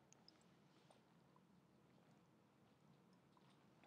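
A woman gulps water from a glass close by.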